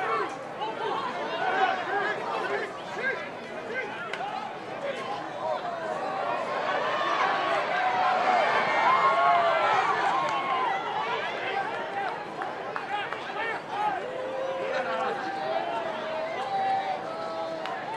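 Rugby players shout and call out to each other on the field.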